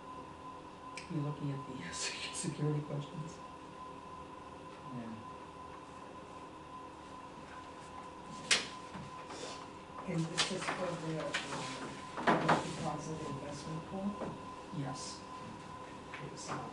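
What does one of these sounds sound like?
A man speaks calmly, a little distant, in a quiet room.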